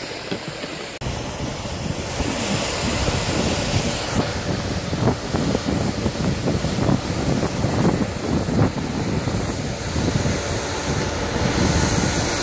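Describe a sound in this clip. Snow cannons roar steadily nearby.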